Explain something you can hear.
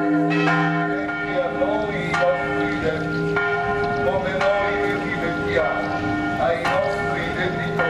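A crowd of men and women sings slowly together outdoors.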